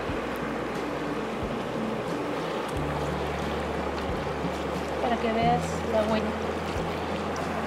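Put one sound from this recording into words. Water laps steadily against a pebbly shore.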